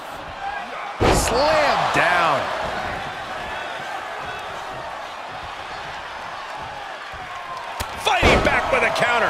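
A wrestler slams heavily onto a ring mat with a loud thud.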